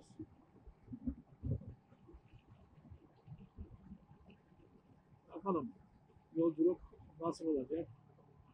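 Wind buffets in low gusts.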